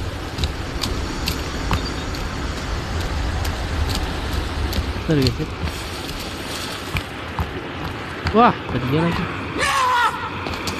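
Footsteps crunch on grass and leaves.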